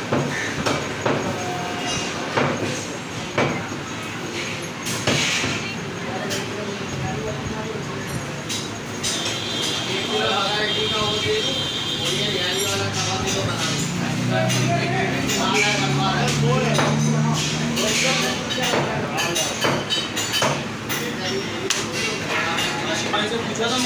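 Meat and a knife knock against a wooden block.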